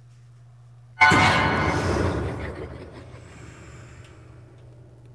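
A monster lets out a sudden loud roar that slowly fades.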